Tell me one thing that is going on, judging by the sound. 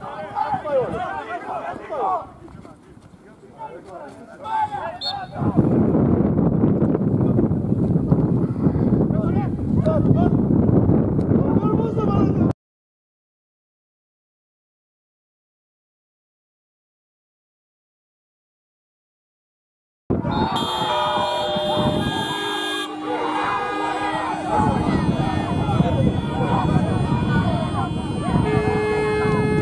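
Men shout to each other outdoors.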